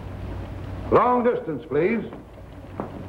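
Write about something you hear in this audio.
A middle-aged man speaks into a telephone.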